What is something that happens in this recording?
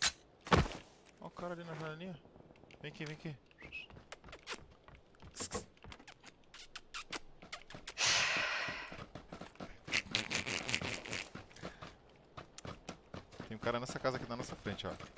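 Gunshots crack in sharp bursts.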